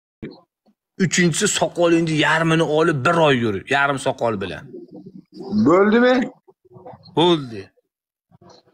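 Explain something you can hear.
A young man talks with animation through a phone microphone.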